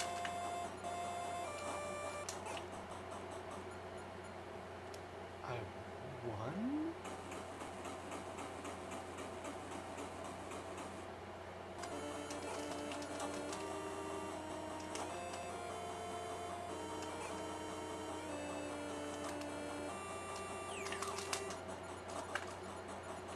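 Chiptune video game music plays with beeping melodies.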